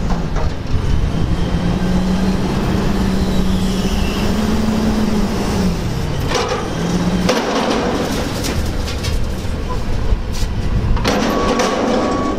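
A garbage bin bangs and rattles against a truck's hopper.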